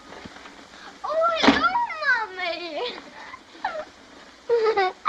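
A young girl cries out excitedly, close by.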